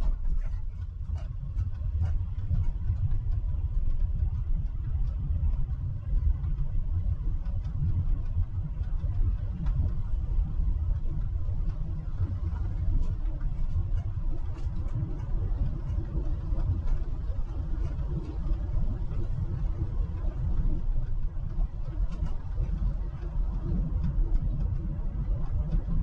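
A car engine hums steadily while tyres roll along a road.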